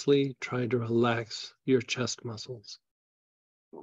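A middle-aged man speaks calmly and close to a microphone, heard through an online call.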